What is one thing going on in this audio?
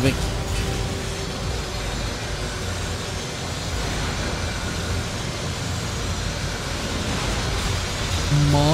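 Footsteps run on a metal floor.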